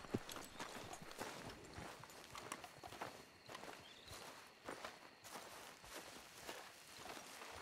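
Footsteps crunch on grass and gravel at a steady walking pace.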